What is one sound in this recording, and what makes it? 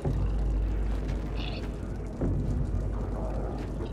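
Small footsteps patter on wooden boards.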